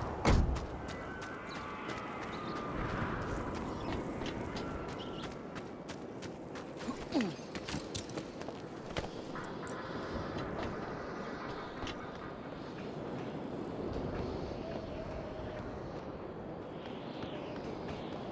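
Footsteps thud quickly on dirt and wooden boards.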